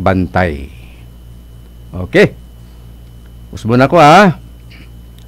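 A middle-aged man speaks into a close microphone in short, drawn-out bursts.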